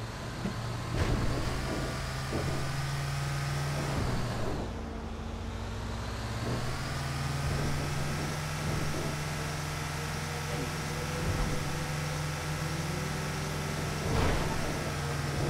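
The bus body rattles and knocks over bumps in the road.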